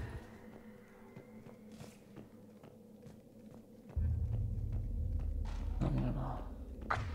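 Heavy armoured footsteps clank steadily on a metal floor.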